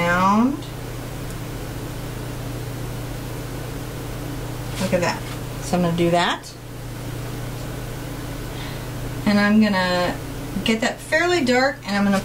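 A woman talks calmly and closely.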